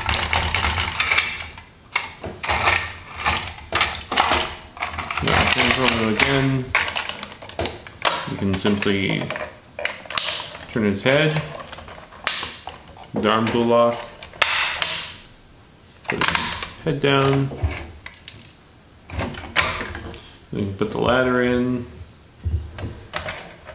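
Plastic toy parts click and snap into place.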